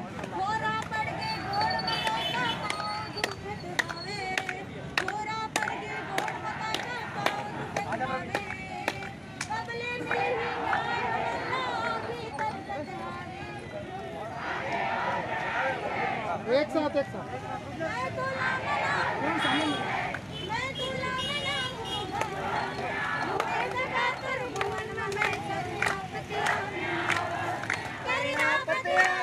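Several men and women talk and call out nearby outdoors.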